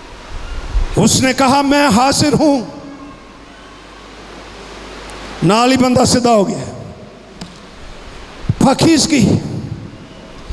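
An elderly man speaks with emphasis into a microphone, heard through loudspeakers.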